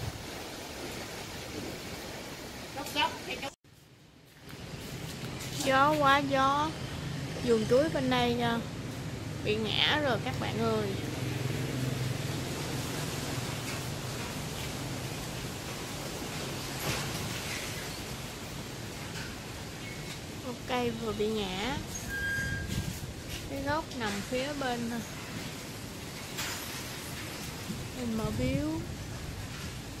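Wind rustles through banana leaves outdoors.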